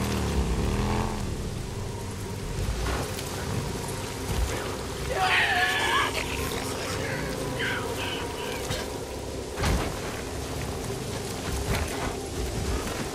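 A motorcycle engine rumbles and revs steadily.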